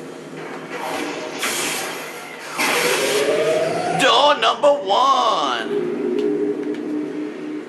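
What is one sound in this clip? A lightsaber swings through the air with sharp whooshes.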